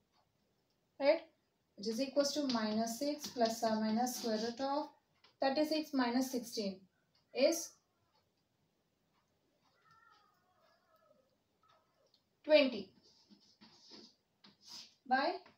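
A young woman speaks clearly and calmly close by, explaining step by step.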